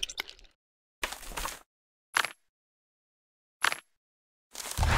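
Soft clicks sound from a game menu.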